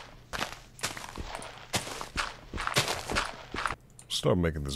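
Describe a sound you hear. Dirt crunches in quick bursts as blocks are dug out.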